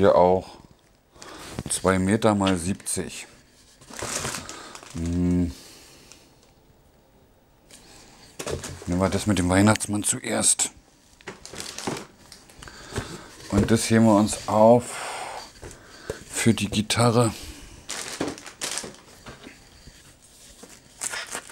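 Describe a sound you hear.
Wrapping paper rolls rustle and crinkle as they are handled.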